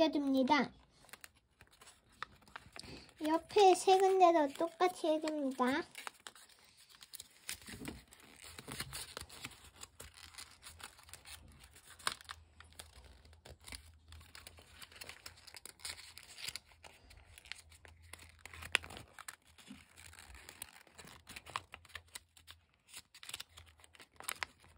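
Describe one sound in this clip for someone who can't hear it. Paper crinkles and rustles softly as hands fold it.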